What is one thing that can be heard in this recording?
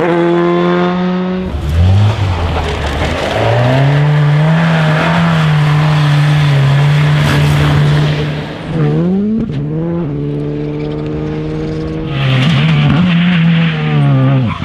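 A rally car engine roars and revs hard as the car speeds past.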